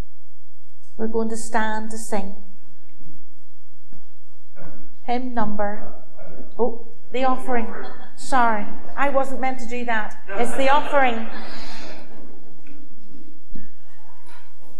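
A woman reads aloud into a microphone, her voice rising and falling.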